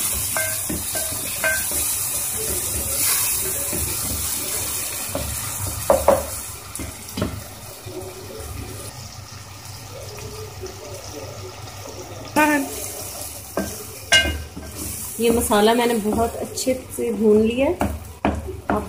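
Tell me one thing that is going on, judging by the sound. A spatula scrapes and knocks against a metal pot.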